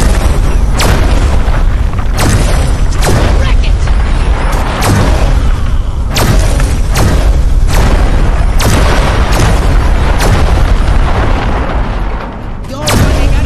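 Explosions boom and crash repeatedly.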